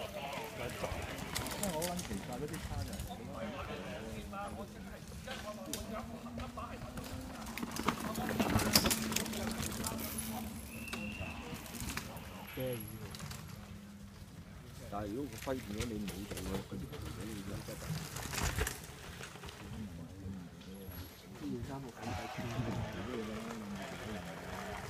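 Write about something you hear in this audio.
Men and women chatter and call out nearby outdoors.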